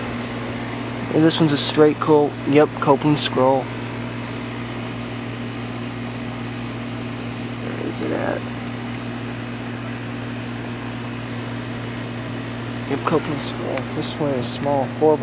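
An air conditioner unit hums steadily with a low drone.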